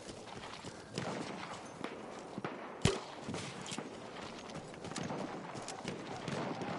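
Gunshots crack in the distance.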